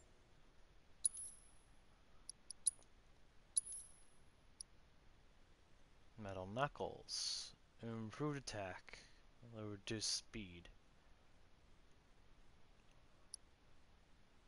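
Short, high menu beeps sound as options are selected.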